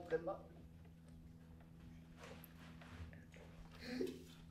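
A woman gulps from a bottle.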